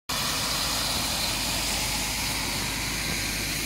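A heavy truck rumbles past on a wet road.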